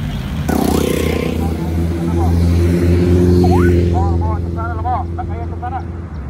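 Motorbike engines rumble close by as they pass on the road.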